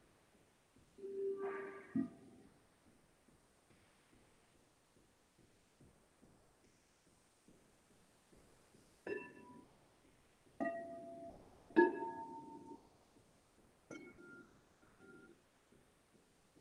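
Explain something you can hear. Crystal singing bowls are struck and ring out with clear, fading tones, heard through an online call.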